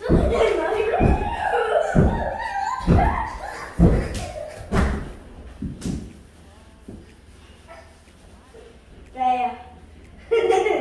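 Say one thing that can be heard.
A young child shouts and squeals excitedly nearby.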